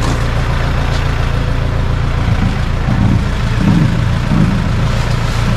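Large plastic sheets rustle and flap as they are carried.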